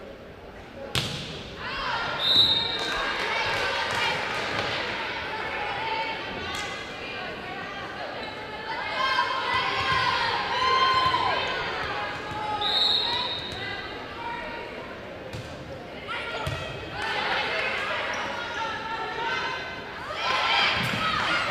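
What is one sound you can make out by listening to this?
A volleyball is struck with sharp smacks.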